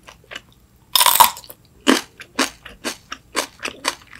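A young woman bites into a crisp cucumber with a loud crunch.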